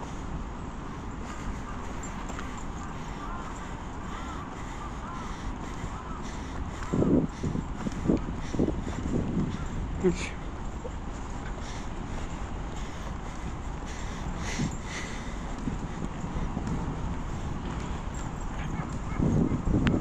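Wind rushes past the microphone outdoors.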